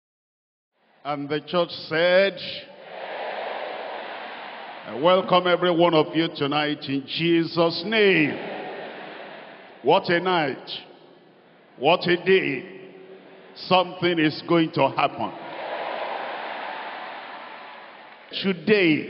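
An elderly man speaks with animation through a microphone in a large echoing hall.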